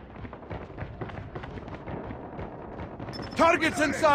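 Rapid gunshots crack and echo in a video game.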